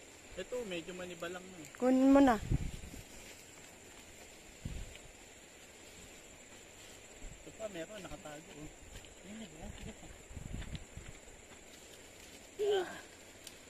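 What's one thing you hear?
Leafy branches rustle as a person pushes through a bush.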